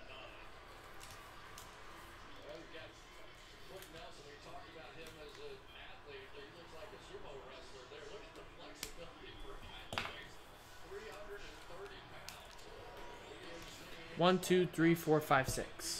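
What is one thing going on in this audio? Foil card packs crinkle and rustle as they are handled.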